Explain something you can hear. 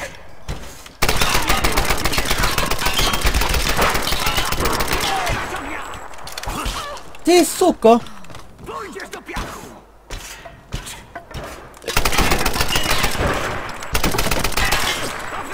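A gun fires in rapid bursts, heard close up.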